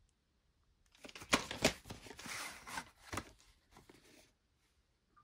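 A plastic cassette case taps and rattles as it is handled.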